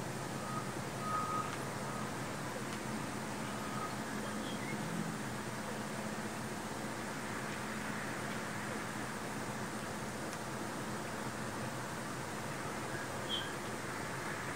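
A small bird chirps briefly nearby.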